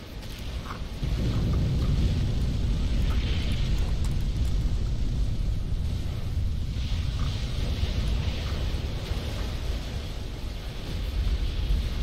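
A deep rumble of distant explosions drones on steadily.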